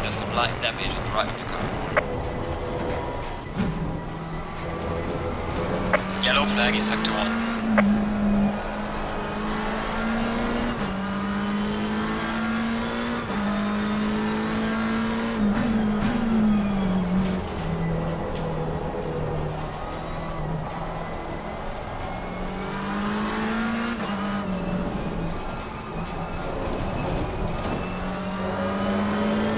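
A racing car engine roars steadily, its pitch rising and falling with each gear change.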